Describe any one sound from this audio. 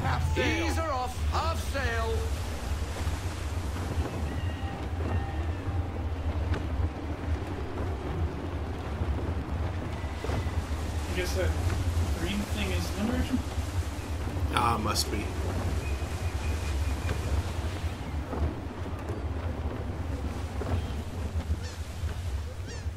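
Waves rush and splash against a sailing ship's hull.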